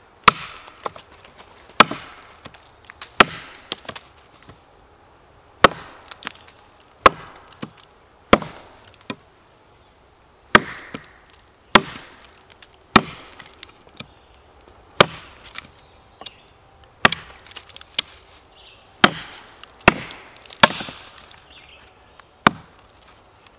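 A hatchet chops sharply into wood, blow after blow.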